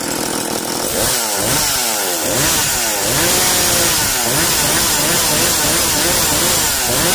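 A chainsaw engine revs up and down again and again.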